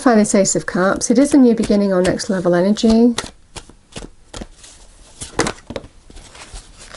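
Playing cards are shuffled with quick flicking taps.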